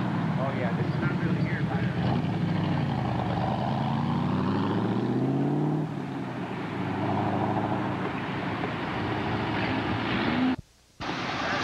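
A sports car engine revs and rises in pitch as the car accelerates.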